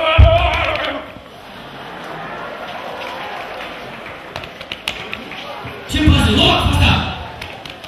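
A crowd murmurs and shouts in a large echoing hall.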